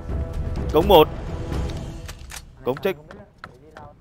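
A gun's magazine clicks as it is reloaded.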